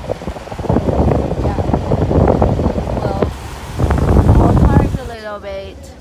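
Strong wind gusts roar loudly outdoors.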